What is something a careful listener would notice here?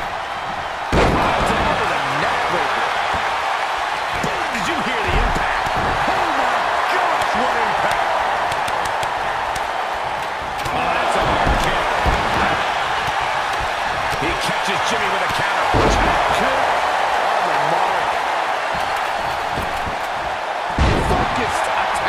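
Heavy bodies thud onto a wrestling mat now and then.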